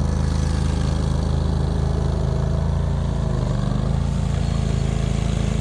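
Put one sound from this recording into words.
A small boat engine drones steadily nearby.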